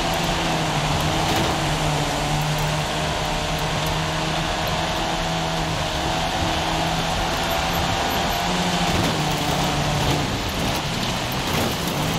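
Car tyres crunch over loose gravel.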